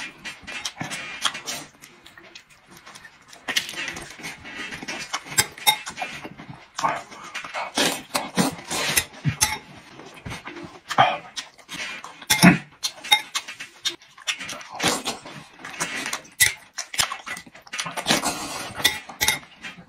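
A man chews and slurps food noisily close by.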